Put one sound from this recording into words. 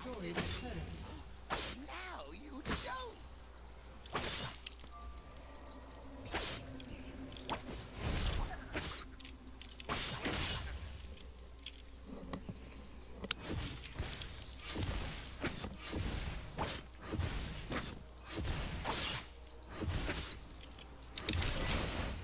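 Game spell effects whoosh and crackle during a fight.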